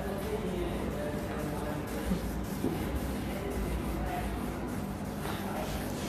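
An eraser rubs across a whiteboard.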